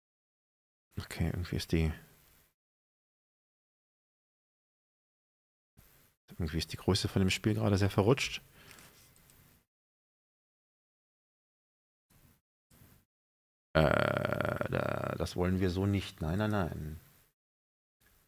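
A man speaks close into a microphone in short bursts, with pauses between.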